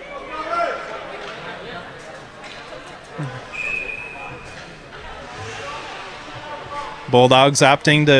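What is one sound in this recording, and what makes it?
Spectators murmur in the background.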